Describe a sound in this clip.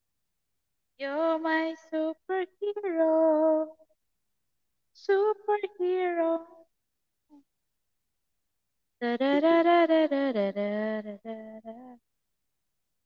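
A young woman sings close to a microphone, in short phrases between silences.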